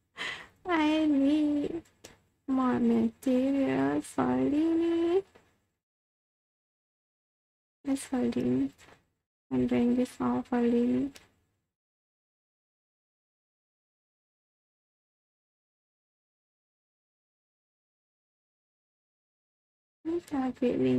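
A young woman speaks animatedly into a close microphone, in a high, cute voice.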